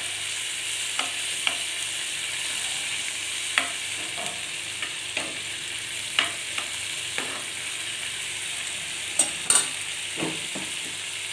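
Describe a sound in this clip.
Oil sizzles steadily in a frying pan.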